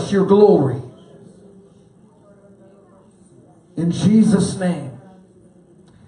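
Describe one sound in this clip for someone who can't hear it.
A man speaks with animation into a microphone in a large echoing hall.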